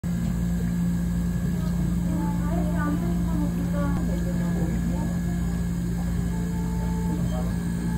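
Milk pours into a plastic blender jug.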